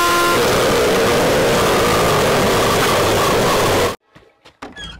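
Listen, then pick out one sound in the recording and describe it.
A cartoon character snores loudly and harshly.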